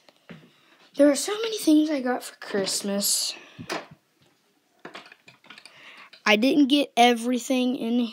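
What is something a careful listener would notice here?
A boy speaks animatedly, close up.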